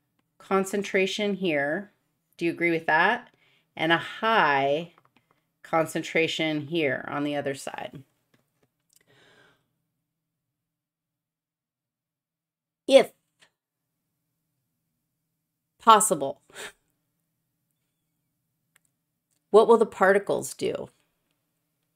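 A woman speaks with animation, close to a microphone, with pauses between phrases.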